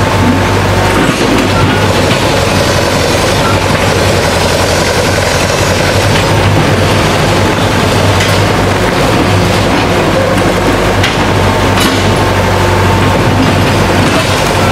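An old engine chugs and rumbles steadily close by.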